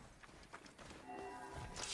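Footsteps run on dry gravel.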